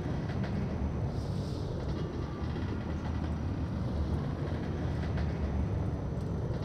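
Footsteps thud on wooden stairs and planks.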